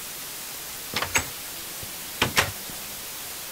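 A wooden door creaks open and shut.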